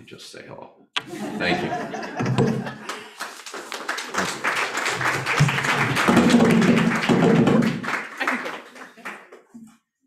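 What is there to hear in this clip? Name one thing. Applause fills the room.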